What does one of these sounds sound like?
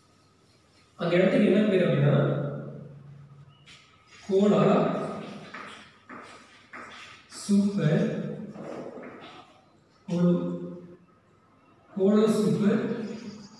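A man speaks loudly in short bursts, as if teaching, with a slight room echo.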